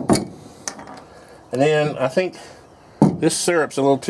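A glass jar clinks as it is set down on a hard surface.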